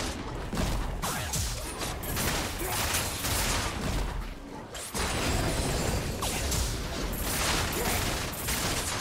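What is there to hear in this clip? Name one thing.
Game spell effects whoosh and clash in quick bursts.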